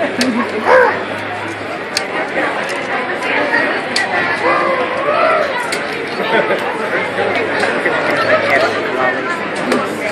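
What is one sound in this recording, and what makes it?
A large crowd of men and women chatters loudly in a big echoing hall.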